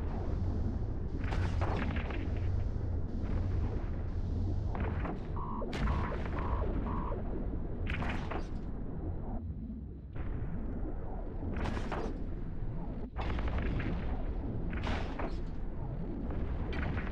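A low engine hum drones steadily.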